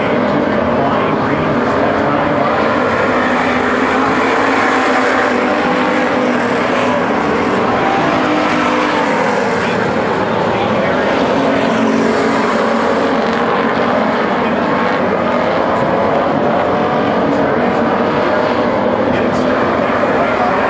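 Race car engines rev up and down.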